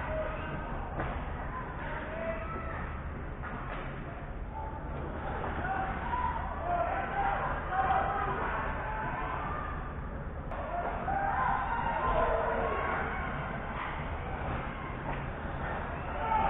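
Players shout across an echoing rink.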